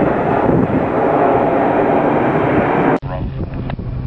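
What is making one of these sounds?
A jet plane roars loudly as it flies low overhead.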